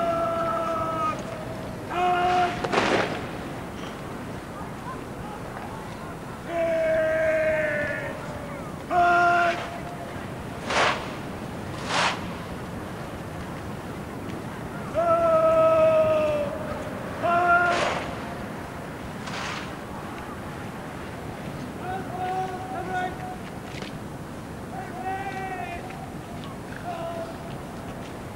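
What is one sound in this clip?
A man shouts long drawn-out drill commands outdoors.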